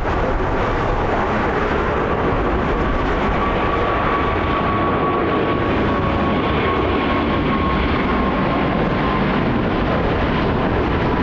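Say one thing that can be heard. A jet airliner roars loudly overhead as it climbs, its engines whining.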